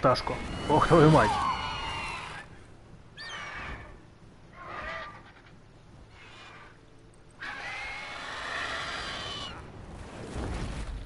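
A large bird of prey screeches loudly.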